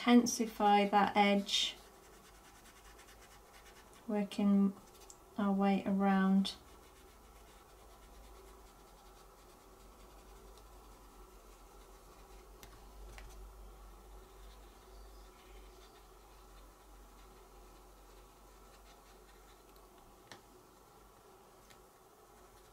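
A brush dabs softly on paper.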